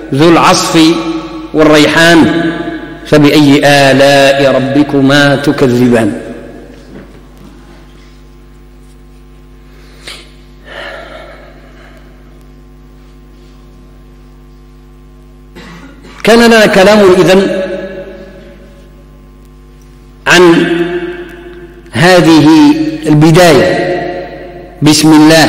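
An elderly man chants melodically into a microphone, pausing between phrases.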